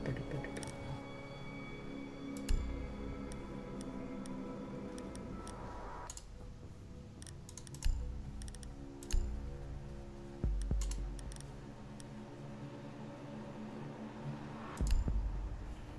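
Short interface clicks sound now and then.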